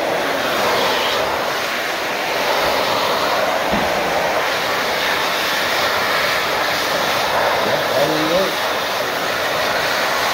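A hand dryer blows air with a loud steady roar.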